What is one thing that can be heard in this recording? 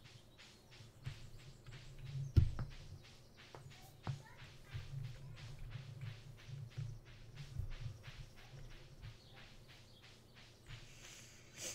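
A young man talks quietly into a close microphone.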